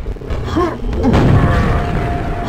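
A rocket explodes with a loud boom.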